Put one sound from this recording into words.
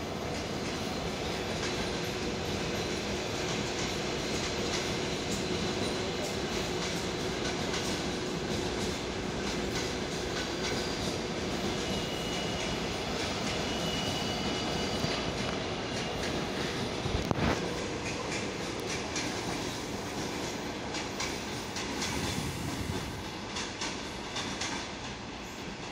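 A train rumbles and clatters along the rails nearby.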